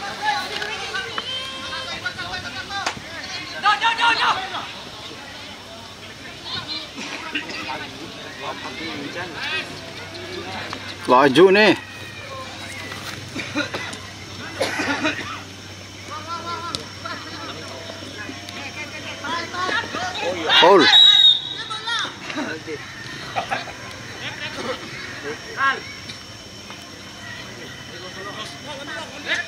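Young men shout and call to each other outdoors across an open field.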